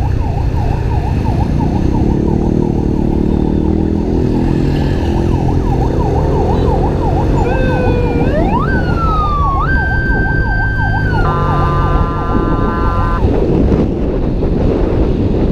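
A motor scooter engine hums steadily while riding.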